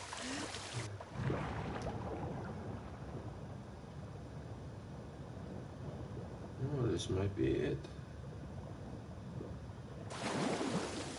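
Muffled underwater sounds swirl dully.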